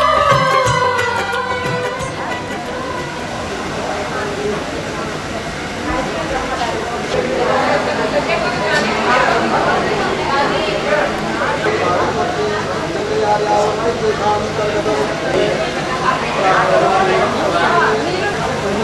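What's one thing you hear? Several women talk quietly close by.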